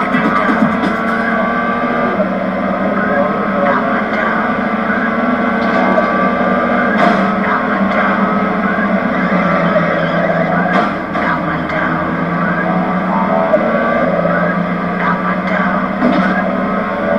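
A racing car engine roars steadily, its pitch rising and falling with the gears.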